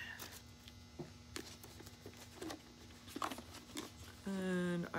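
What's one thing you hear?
A plastic jar rattles in a woman's hands.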